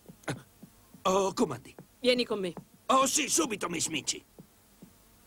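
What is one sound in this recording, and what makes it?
A woman speaks sharply and close by.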